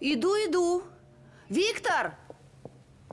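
A woman exclaims loudly nearby.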